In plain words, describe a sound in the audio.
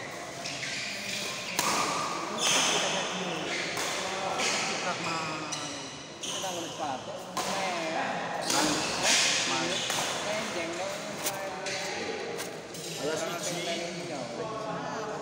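A racket smacks a shuttlecock back and forth.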